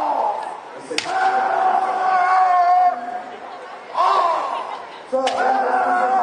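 Bamboo swords clack sharply against each other.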